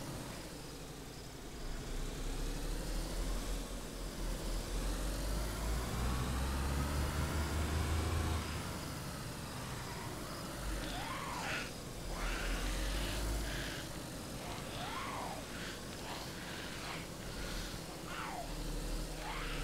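A car engine revs and hums.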